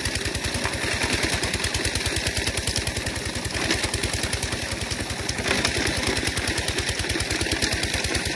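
A shovel scrapes through gravel.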